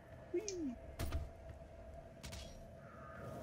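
A gun fires a few loud shots.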